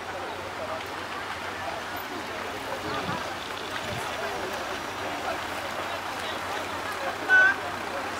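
A car engine idles and the car drives slowly past.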